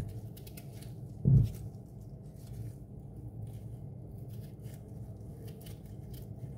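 A knife scrapes and cuts through a potato.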